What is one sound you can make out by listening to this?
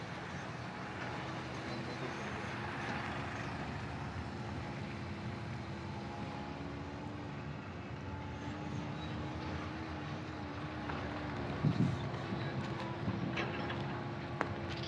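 Heavy machinery engines rumble steadily in the distance.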